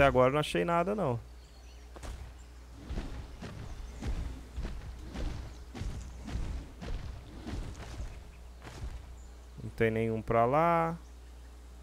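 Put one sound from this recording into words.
A large creature roars loudly.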